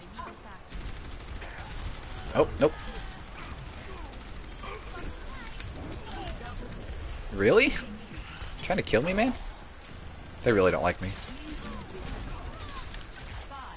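A game energy weapon zaps and crackles as it fires.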